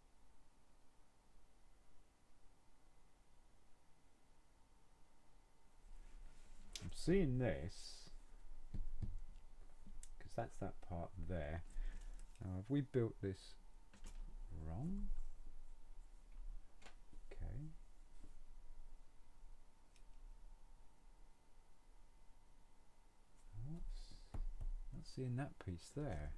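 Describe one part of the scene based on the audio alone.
Plastic pieces click and rattle as hands handle them.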